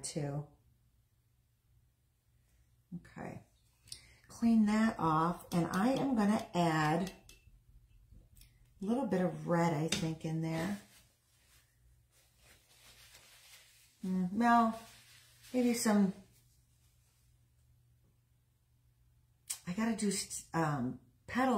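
A middle-aged woman talks calmly and close by, in short bursts.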